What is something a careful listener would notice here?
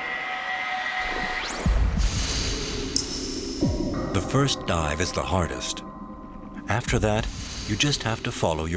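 A seal trills and whistles underwater, with sweeping, warbling calls.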